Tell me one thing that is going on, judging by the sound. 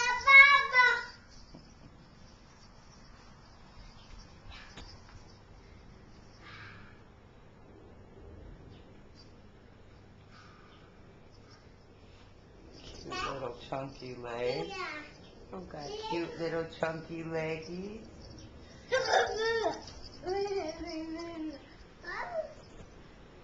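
A toddler girl babbles and squeals nearby.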